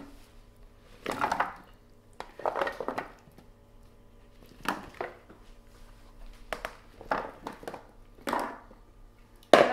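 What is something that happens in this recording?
Chunks of vegetables tumble and clatter into a metal baking pan.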